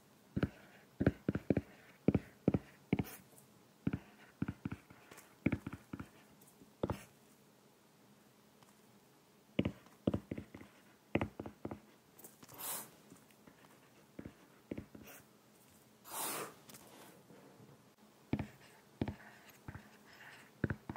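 A stylus taps and scratches on a glass tablet surface, close up.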